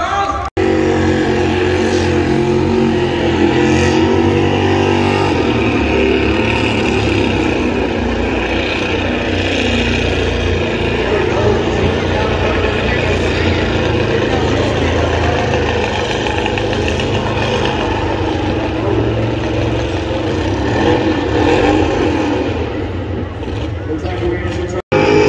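Tyres screech and squeal in a burnout.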